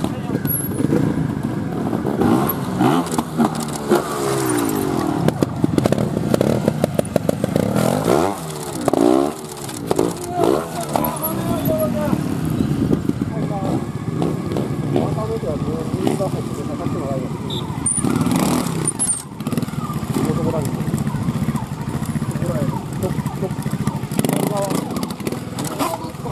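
A motorbike engine revs up and down sharply, close by.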